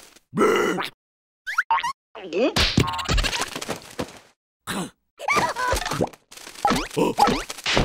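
A cartoon creature laughs loudly.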